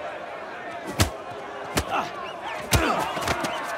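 Fists thud in heavy punches.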